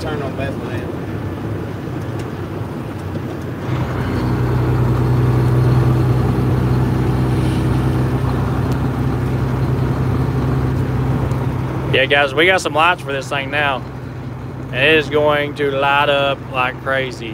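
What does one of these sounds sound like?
A car engine hums steadily while driving, growing louder after a few seconds.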